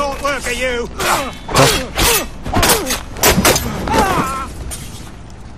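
Swords clash and ring sharply several times.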